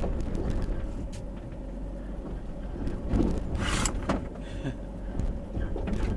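Bushes scrape against the sides of a car.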